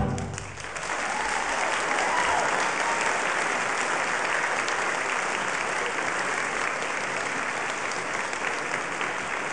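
A large mixed choir sings together in a big echoing hall.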